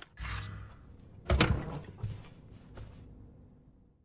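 A heavy metal lid thuds shut.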